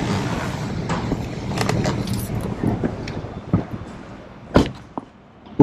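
Traffic rumbles steadily along a nearby street.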